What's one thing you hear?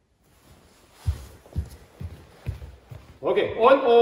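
Bare feet thump across a hard floor.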